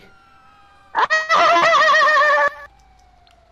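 A police siren wails nearby.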